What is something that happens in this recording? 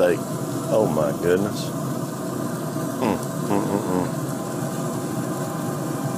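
Metal tongs clack against a grill grate.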